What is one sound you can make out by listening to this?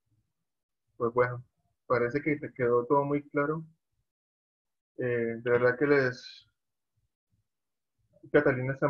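A man speaks calmly through an online call, in short bursts.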